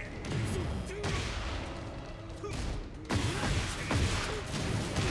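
Heavy blows land with loud, booming thuds.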